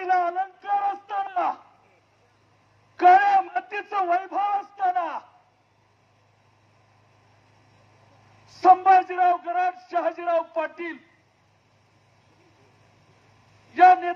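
An elderly man speaks forcefully into a microphone outdoors, in short bursts with pauses.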